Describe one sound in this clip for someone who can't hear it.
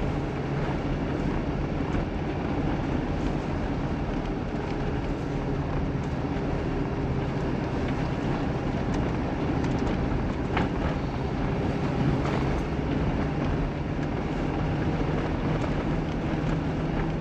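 Tyres crunch and rumble over packed snow.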